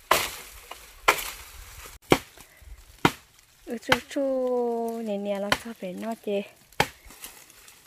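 A blade chops through dry bamboo stalks with sharp, regular blows.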